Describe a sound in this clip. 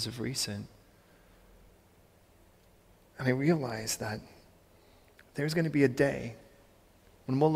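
A man speaks calmly in short phrases, with a slight echo of a large hall.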